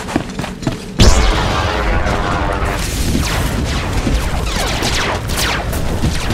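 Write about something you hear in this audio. Blaster shots fire rapidly.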